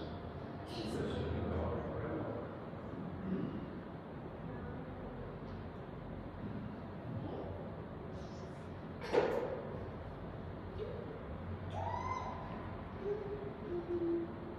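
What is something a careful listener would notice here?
An elderly man speaks quietly and slowly in an echoing hall.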